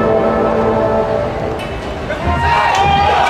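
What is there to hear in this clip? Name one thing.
A marching band plays music with drums.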